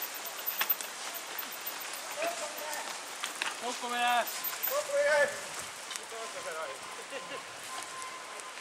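Bicycle chains and frames rattle over bumps.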